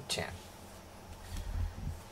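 A hand rubs softly through a cat's fur.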